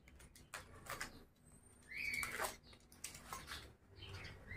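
Paper rustles as it is unwrapped.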